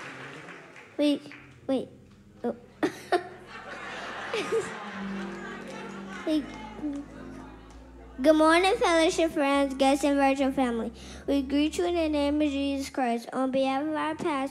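A young girl speaks through a microphone in a large hall.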